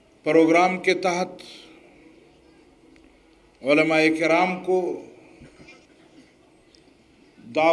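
An elderly man speaks forcefully into a microphone over loudspeakers, his voice echoing.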